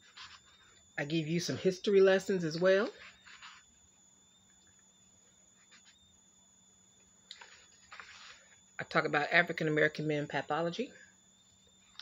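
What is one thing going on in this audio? A woman speaks close to a microphone, reading out with animation.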